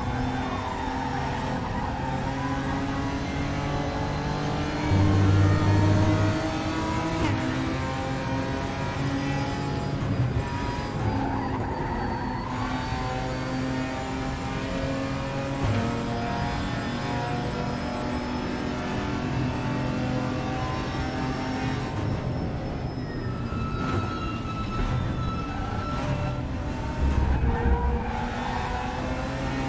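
A racing car engine roars steadily, rising and falling in pitch as the gears change.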